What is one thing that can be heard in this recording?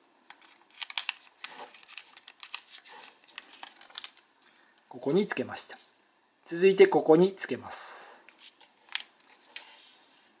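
Paper crinkles and rustles as it is folded by hand.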